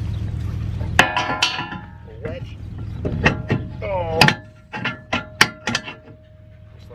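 Metal clanks and clinks as a trailer hitch pin is worked loose.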